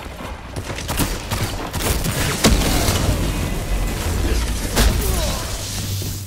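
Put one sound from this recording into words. Gunshots and electric blasts crack in quick bursts.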